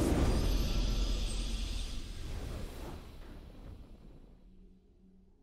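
A triumphant game fanfare plays and fades.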